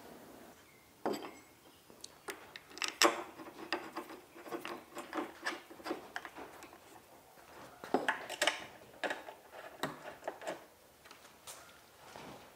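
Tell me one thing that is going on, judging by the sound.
Metal parts clink and tap.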